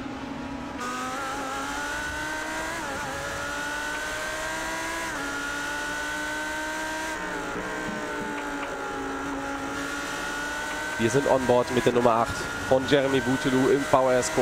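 A racing car engine whines steadily at high revs, rising and dropping in pitch as it shifts gears.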